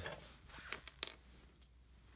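A small metal pin clinks against a hard floor.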